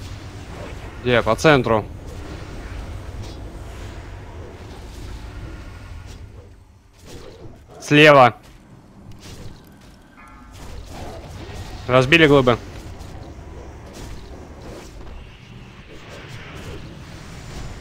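Magic spells whoosh and shimmer in a fight.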